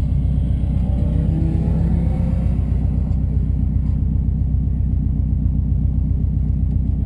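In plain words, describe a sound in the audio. A car engine idles with a steady, low rumble close by.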